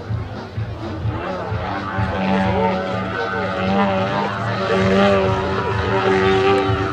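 A small propeller plane's engine drones overhead, its pitch rising and falling as it tumbles.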